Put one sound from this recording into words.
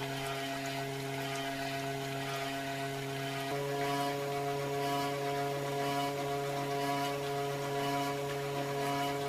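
A hand-cranked cream separator hums steadily as it spins.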